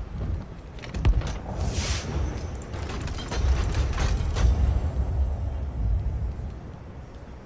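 A heavy wooden chest creaks and thuds open.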